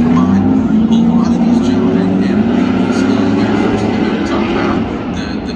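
Car engines drone and rev in the distance.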